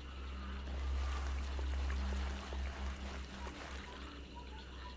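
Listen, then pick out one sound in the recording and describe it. Footsteps rustle through dense leafy undergrowth.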